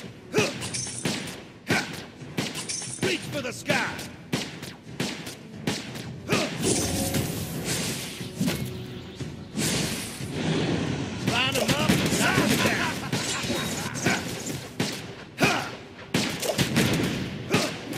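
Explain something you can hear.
Game sound effects of strikes and spells crackle and thud in quick bursts.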